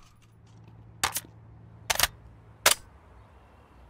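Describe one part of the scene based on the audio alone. A rifle is reloaded with metallic clicks and clacks.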